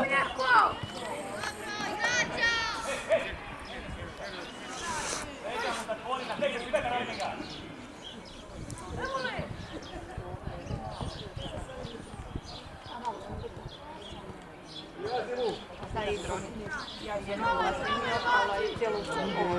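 Young players shout to each other outdoors across an open field.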